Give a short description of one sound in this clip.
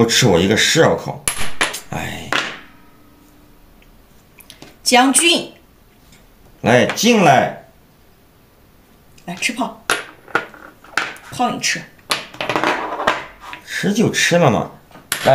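Game pieces click and clack onto a wooden board.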